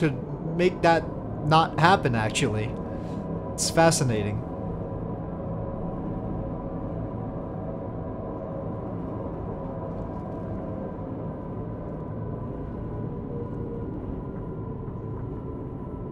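A low electric hum drones steadily as a tram glides along.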